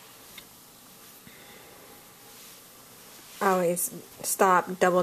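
Hands softly rustle knitted fabric.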